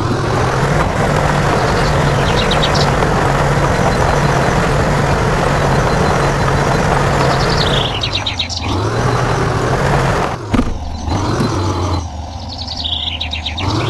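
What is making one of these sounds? A heavy truck engine rumbles and strains at low speed.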